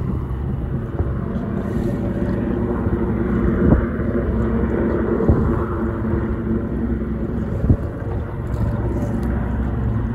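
A helicopter drones steadily in the distance.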